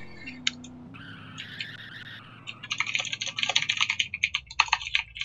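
Tyres screech on the road while the car drifts.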